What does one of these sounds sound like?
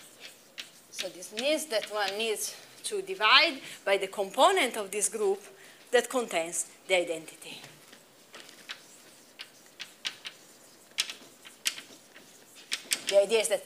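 A young woman speaks calmly, lecturing.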